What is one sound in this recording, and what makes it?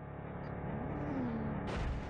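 Motorbike engines rev nearby.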